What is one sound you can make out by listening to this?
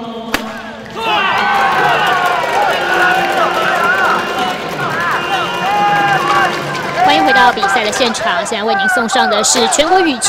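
A crowd of spectators cheers and shouts loudly in a large echoing hall.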